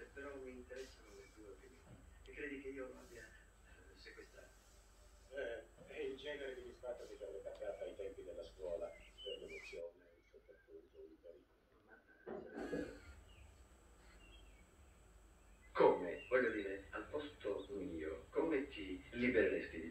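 Men talk calmly, heard through a television speaker in a room.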